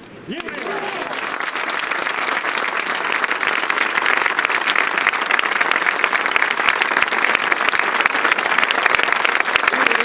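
A large crowd claps steadily outdoors, growing louder.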